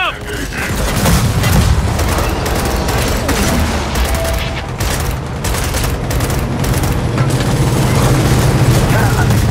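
A large propeller aircraft drones loudly overhead.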